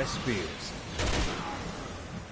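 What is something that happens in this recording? A gun fires a single loud shot.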